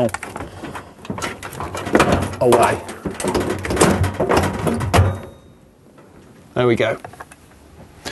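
A metal panel knocks.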